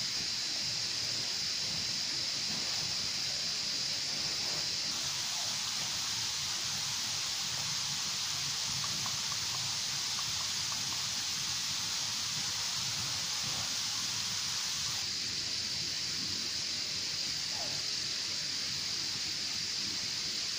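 Tent fabric rustles as it is handled close by.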